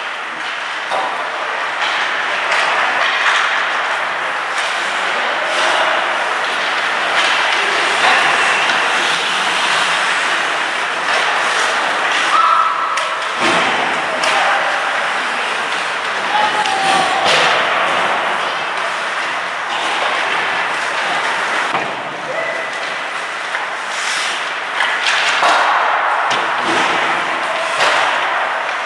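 The sound echoes around a large indoor rink.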